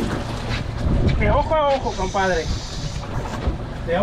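A caught fish flaps and thumps against a boat.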